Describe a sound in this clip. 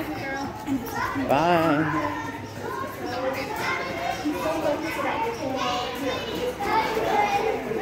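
Young children shout and chatter nearby.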